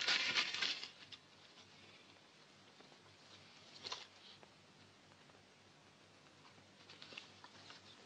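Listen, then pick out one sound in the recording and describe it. Paper rustles as it is unfolded.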